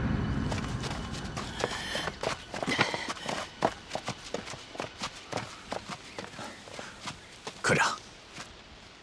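A man speaks tensely nearby.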